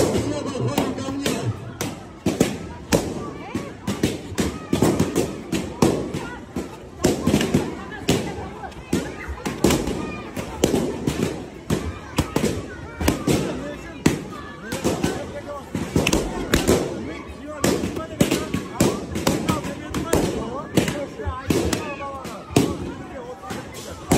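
Balloons pop loudly again and again.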